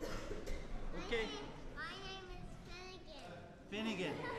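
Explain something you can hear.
A young boy speaks close by in a high voice.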